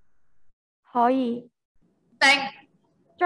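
A young person calls out loudly through an online call.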